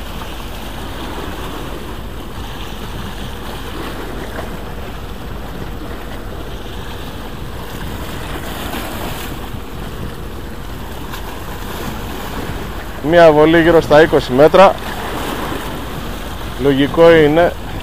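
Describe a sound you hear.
Small waves splash against rocks nearby.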